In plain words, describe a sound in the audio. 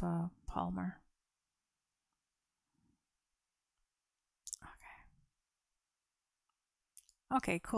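A young woman speaks softly and closely into a microphone, in short phrases with pauses.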